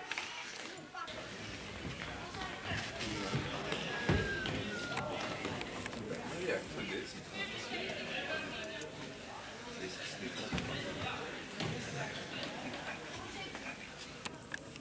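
Players' voices echo faintly in a large indoor hall.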